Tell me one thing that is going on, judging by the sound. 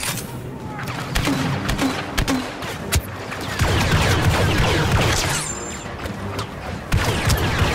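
Laser blasters fire in sharp, rapid shots.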